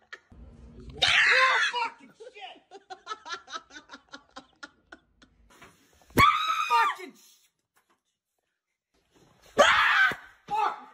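A man screams loudly in fright, close by.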